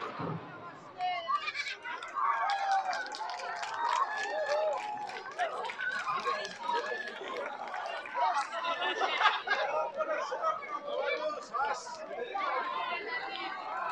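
Men and women in a crowd chatter excitedly nearby.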